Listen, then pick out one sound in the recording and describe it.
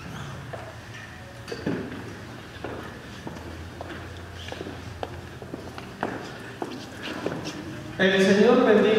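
A man speaks calmly in a large echoing hall.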